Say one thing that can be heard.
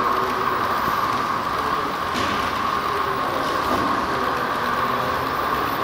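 A model train rolls along its track with a steady electric whir and rattle.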